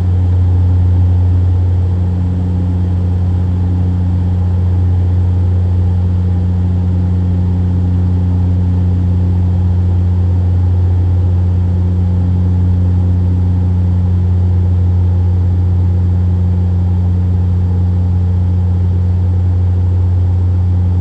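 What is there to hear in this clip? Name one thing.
An aircraft engine drones with a steady low hum.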